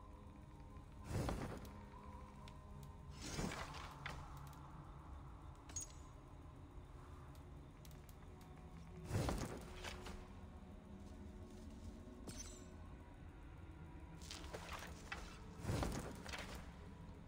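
Soft whooshing menu sounds play now and then.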